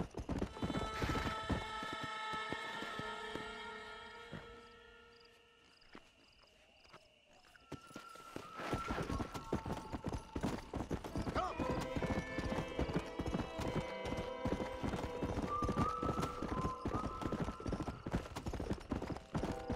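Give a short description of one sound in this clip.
A horse gallops, its hooves pounding on a dirt track.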